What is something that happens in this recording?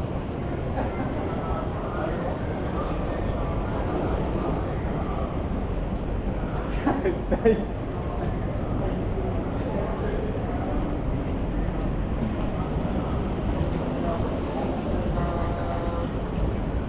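A steady hum of city traffic and crowd murmur fills the air.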